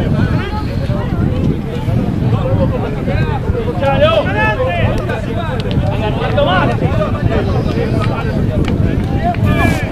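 Young men shout and call to each other outdoors at a distance.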